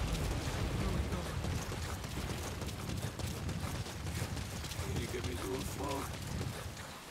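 A man speaks weakly and hoarsely, close by.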